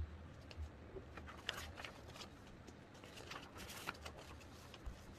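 Paper pages rustle.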